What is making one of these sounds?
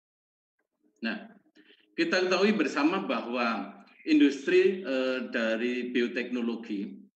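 A man speaks calmly through an online call microphone.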